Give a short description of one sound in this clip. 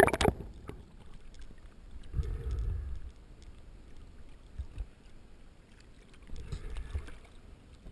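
Small waves slosh and lap around a swimmer at the surface.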